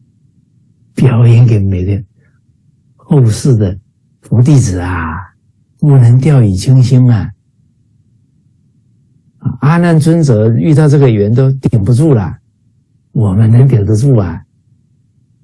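A middle-aged man speaks with animation in short bursts over an online call.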